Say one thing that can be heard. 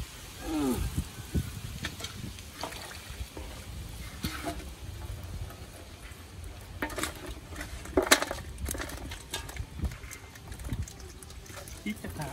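A metal basin clanks and scrapes on the ground.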